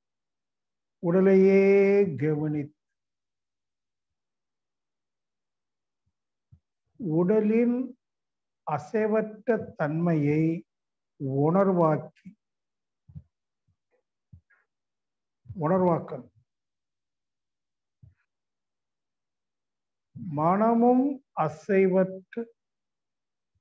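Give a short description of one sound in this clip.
An elderly man speaks slowly in short phrases with long pauses, heard through an online call.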